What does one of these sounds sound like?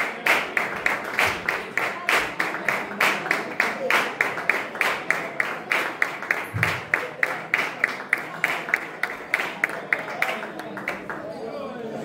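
An audience claps in a quick, steady rhythm in a room.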